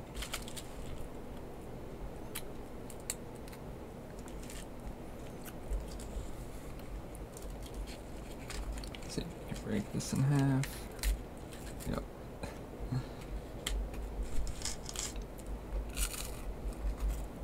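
Foil wrapping crinkles and rustles as hands fold it.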